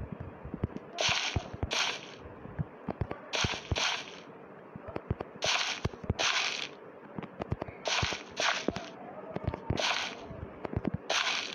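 A hoe scrapes soil in short, repeated bursts.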